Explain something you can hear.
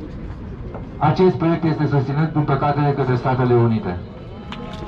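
A man speaks loudly into a microphone, heard through loudspeakers outdoors.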